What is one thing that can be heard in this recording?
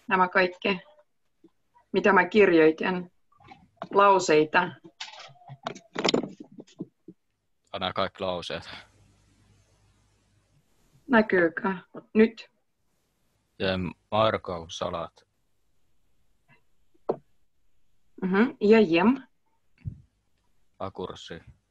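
A woman speaks calmly and slowly through a microphone, pausing often, as in an online call.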